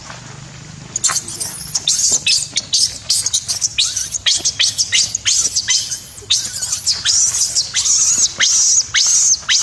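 A baby monkey squeals and screeches over and over, loud and close.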